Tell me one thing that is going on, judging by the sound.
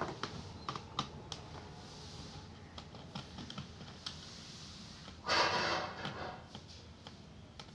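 A plastic panel is pried and clicks loose.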